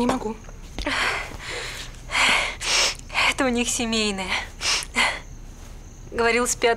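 A young woman speaks quietly and breathily, close by.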